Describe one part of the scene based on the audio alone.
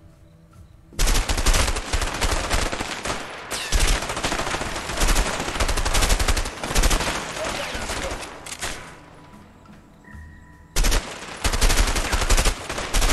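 Automatic rifles fire in rapid, loud bursts.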